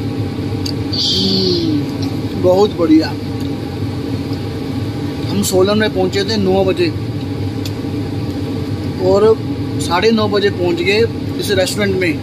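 A man speaks close to the microphone in a low, relaxed voice.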